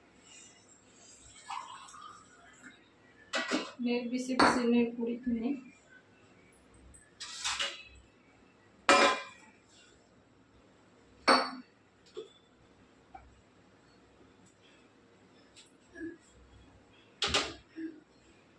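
Metal pots and utensils clatter and clink.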